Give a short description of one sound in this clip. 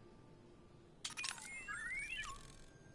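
A small bird chirps and trills close by.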